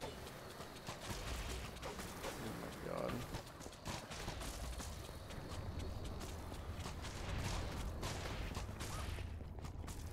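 A crossbow twangs as bolts are fired.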